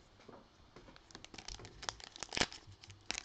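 Gloved hands tear open a crinkly foil wrapper.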